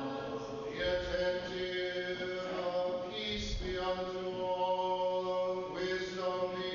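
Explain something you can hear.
A man chants in long sustained tones in a large echoing hall.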